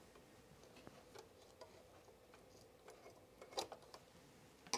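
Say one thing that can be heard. Scissors snip thread with a small click.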